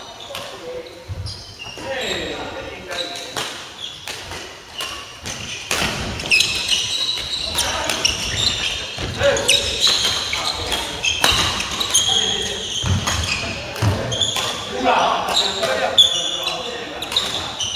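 Shoes squeak on a hard floor in a large echoing hall.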